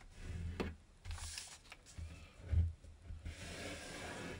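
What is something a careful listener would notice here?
Hands rub and smooth paper flat.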